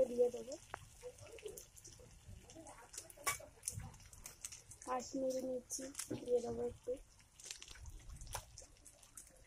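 Food sizzles softly in hot oil.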